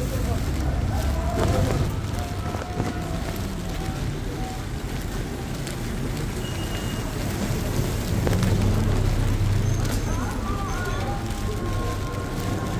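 Rain patters steadily on a wet street outdoors.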